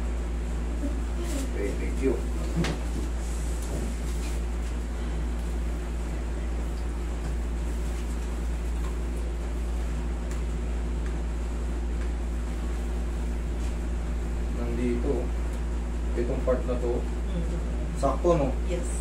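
A young man talks calmly nearby.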